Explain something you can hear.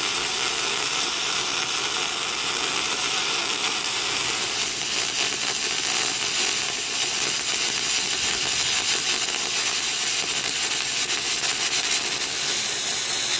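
An electric welding arc hisses and crackles steadily.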